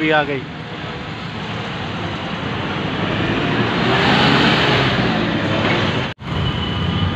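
A bus engine rumbles loudly as the bus passes close by.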